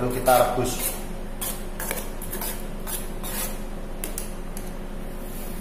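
A metal spoon scrapes and clinks against a metal pan.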